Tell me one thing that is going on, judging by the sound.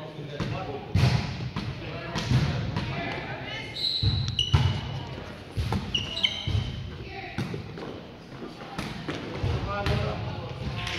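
A volleyball is struck with the hands in an echoing gym.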